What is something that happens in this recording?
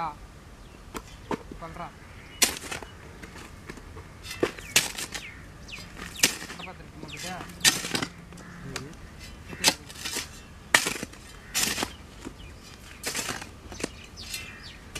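A hoe chops into soil with sharp thuds.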